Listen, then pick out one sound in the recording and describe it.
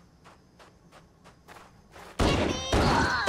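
Footsteps tread steadily over grass.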